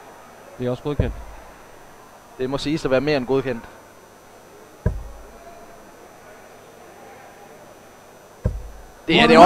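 Darts thud into a dartboard one at a time.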